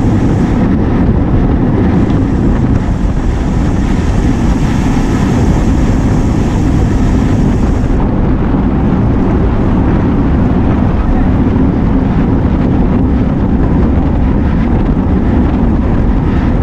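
Wind rushes loudly past, as if outdoors at speed.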